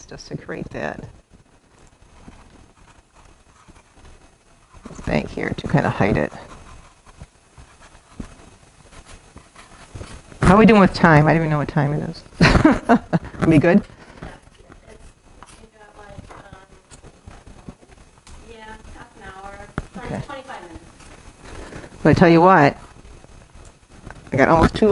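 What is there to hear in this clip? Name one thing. A woman talks calmly close by, in pauses.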